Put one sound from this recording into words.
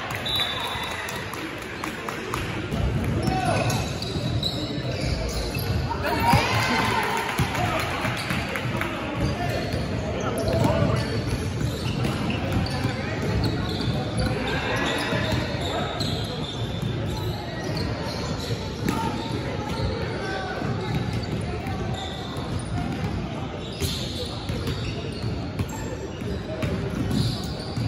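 Young men call out to one another across an echoing gym.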